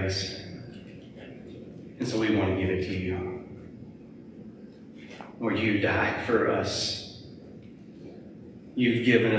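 A man speaks calmly through a microphone in a large echoing room, with pauses between phrases.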